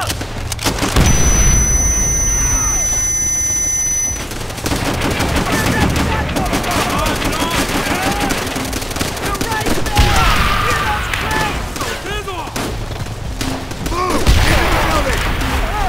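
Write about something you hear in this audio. Loud explosions boom and rumble nearby.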